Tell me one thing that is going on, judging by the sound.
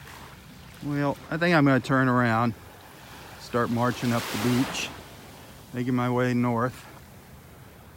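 Small waves lap gently on the shore.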